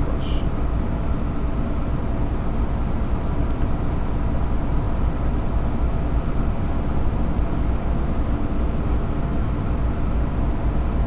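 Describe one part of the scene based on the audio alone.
A train engine hums and rumbles steadily as the train rolls along the tracks.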